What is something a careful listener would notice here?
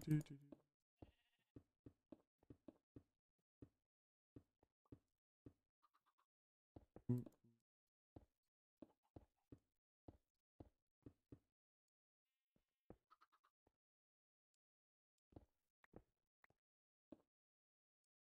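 Game footsteps tap steadily on stone and grass.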